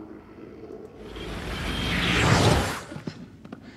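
Loud television static swells up and then cuts off abruptly.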